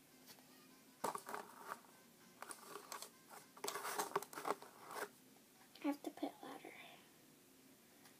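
A young girl talks quietly close by.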